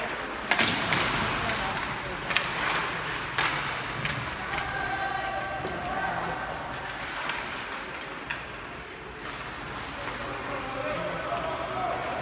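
Sounds echo through a large indoor arena.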